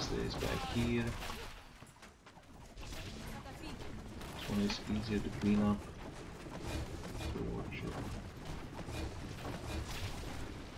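Explosions boom and crackle in a battle.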